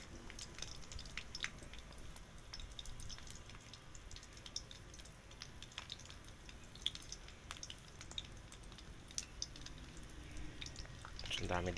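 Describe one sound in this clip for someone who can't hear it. A metal spatula scrapes against a wok.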